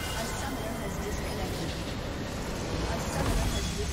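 A large structure shatters with a crystal crash.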